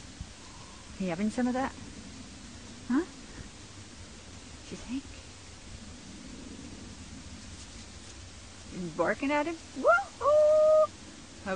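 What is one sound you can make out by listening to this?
A puppy yelps and whines outdoors.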